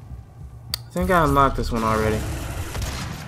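A young man exclaims with excitement through a microphone.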